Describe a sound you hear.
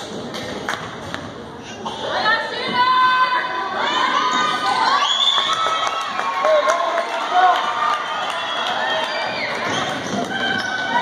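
Spectators talk and call out in a large echoing gym.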